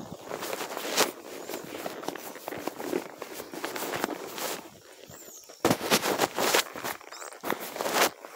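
Fingers rub and bump close against the recorder.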